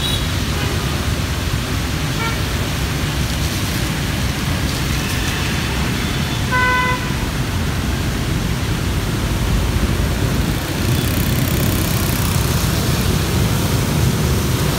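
Light rain patters steadily on wet pavement outdoors.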